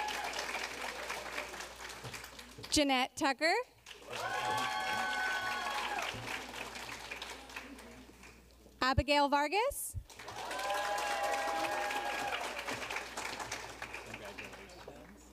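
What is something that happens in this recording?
An audience claps and applauds in a large hall.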